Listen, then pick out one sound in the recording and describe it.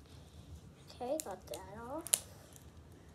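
A young girl speaks softly, close by.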